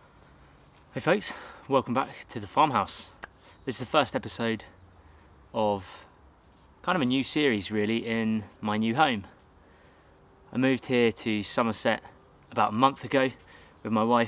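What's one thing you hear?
A young man talks calmly, close to the microphone.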